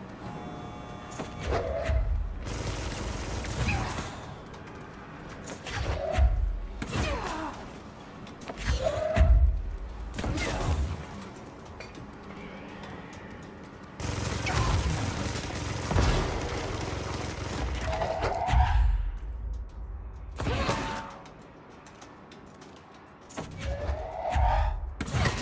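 Heavy blasts boom.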